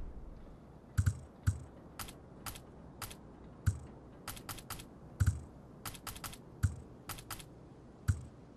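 Short clicks tick repeatedly as a selection wheel turns.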